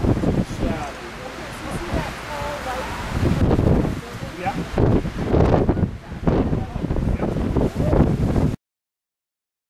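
Wind blows in gusts across the microphone outdoors.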